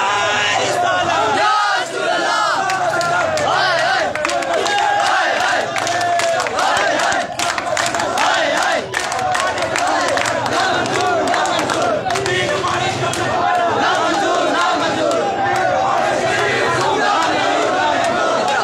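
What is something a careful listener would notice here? A large crowd of young men chants loudly together close by.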